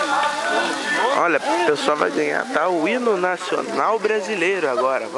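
A young man sings loudly close by.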